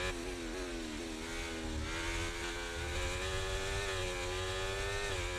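A racing car engine screams at high revs, its pitch climbing and dropping with quick gear changes.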